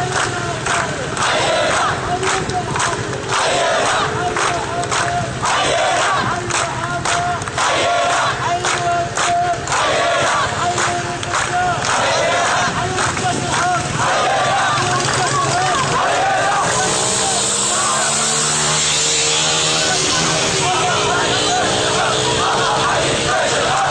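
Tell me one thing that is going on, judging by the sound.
A crowd of men chants loudly together outdoors at night.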